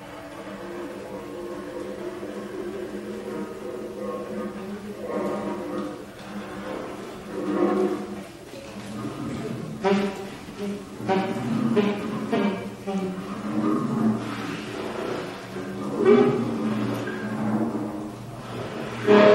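A saxophone plays a winding melody in a reverberant hall.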